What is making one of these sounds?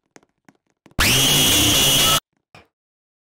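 A loud, harsh screech blares in a sudden burst.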